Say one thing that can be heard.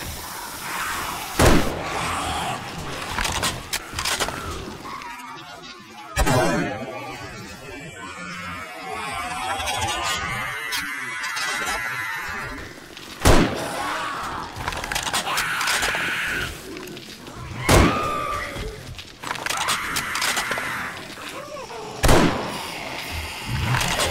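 Zombies growl and moan.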